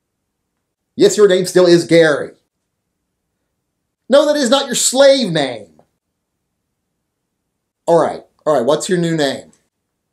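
A middle-aged man speaks with animation, close to a microphone, in short bursts.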